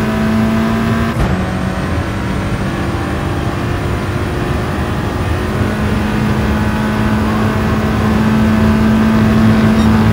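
A racing car engine roars at high revs.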